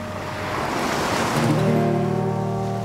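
A whale blows a loud breath through its blowhole.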